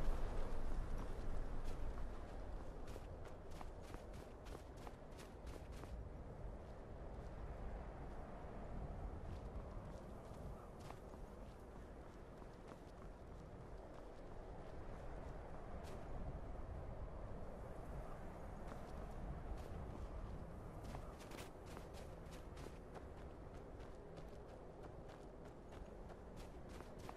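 A howling wind blows steadily through a snowstorm.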